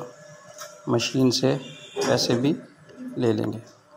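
A cash machine whirs and clicks as it pushes out banknotes.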